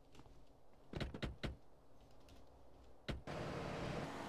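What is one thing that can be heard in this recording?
Car doors slam shut.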